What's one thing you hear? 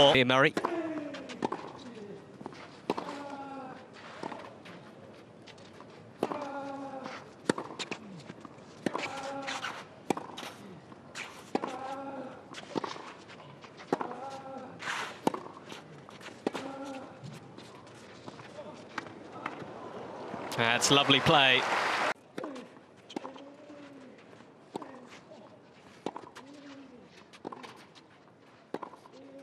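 A tennis ball is struck back and forth with sharp pops from the rackets.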